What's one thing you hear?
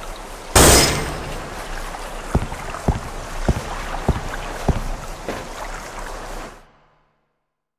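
Water sloshes and laps steadily.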